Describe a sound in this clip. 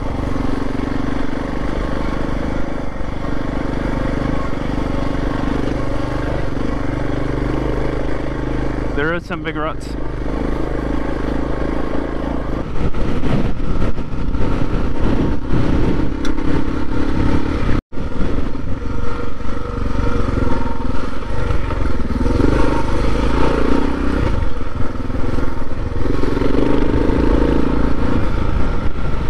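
A dirt bike engine revs and drones steadily up close.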